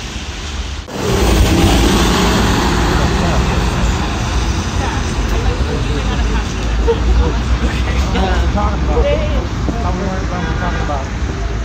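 A diesel city bus pulls away.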